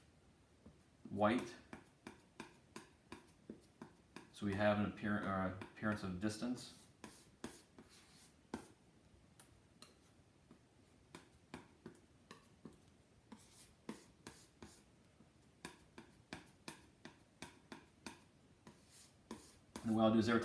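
A palette knife taps and scrapes on a palette over and over.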